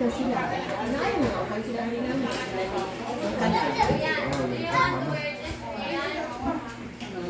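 Several adults chat and talk over one another nearby.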